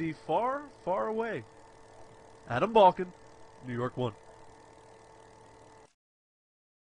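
A blower hums steadily.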